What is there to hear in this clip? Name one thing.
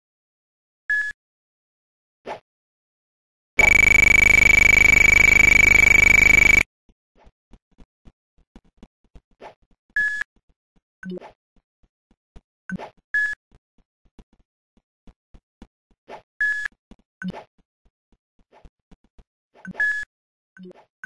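An elevator chime dings briefly at each floor.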